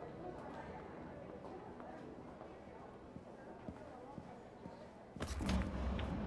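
People murmur and chatter quietly in the background.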